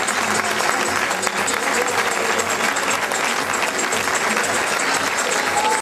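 A crowd applauds loudly and steadily in a large hall.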